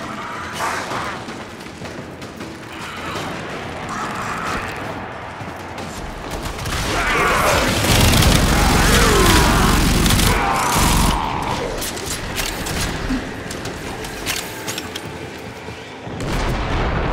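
Weapons fire and energy blasts crackle in quick bursts.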